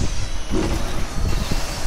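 A blade swings and strikes a creature.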